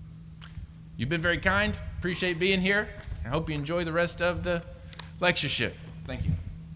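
A young man speaks calmly into a microphone in a large echoing hall.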